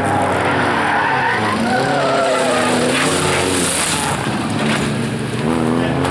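A car crashes and tumbles with a loud crunch.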